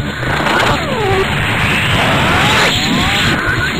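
A roaring whoosh of energy surges up.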